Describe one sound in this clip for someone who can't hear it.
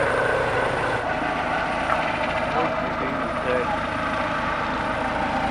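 A helicopter hovers overhead with a steady rotor drone.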